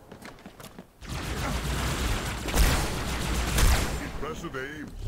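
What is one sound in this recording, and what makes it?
A loud energy blast booms and crackles.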